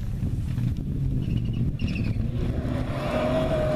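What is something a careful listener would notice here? A second rally car engine approaches, revving.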